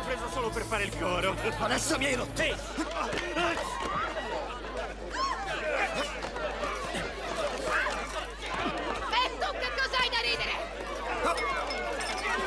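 A crowd of men and women shout and cheer excitedly close by.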